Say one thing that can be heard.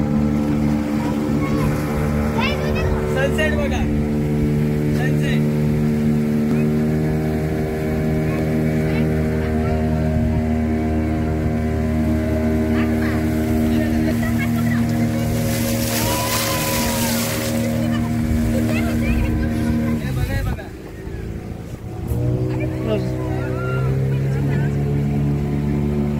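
Water rushes and churns along a boat's hull.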